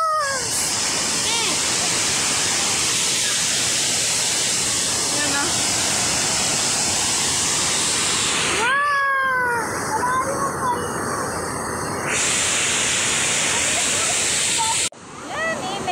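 Water rushes and splashes loudly down a waterfall.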